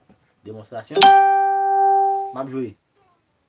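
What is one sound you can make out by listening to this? An electric guitar plays a single ringing note.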